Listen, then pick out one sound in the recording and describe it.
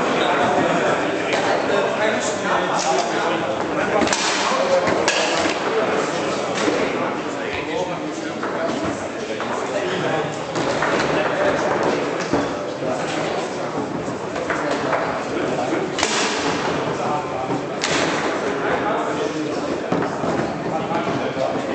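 Foosball rods clack and a ball knocks sharply against the table.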